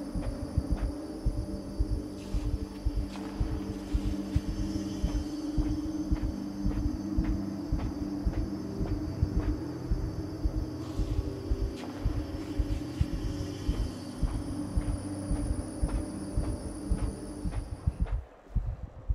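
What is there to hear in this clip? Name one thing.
Many footsteps march slowly in step across a hard floor.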